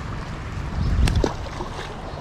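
A fish splashes into shallow water.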